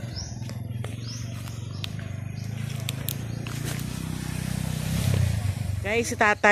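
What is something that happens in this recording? Footsteps crunch over dry leaves and twigs.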